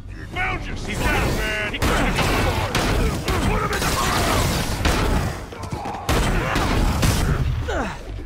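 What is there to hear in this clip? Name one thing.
Punches and kicks land with heavy thuds in a fast fight.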